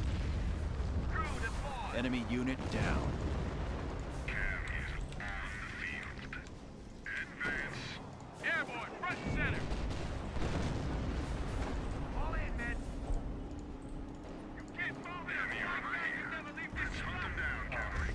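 Gunfire and explosions rumble from a battle game.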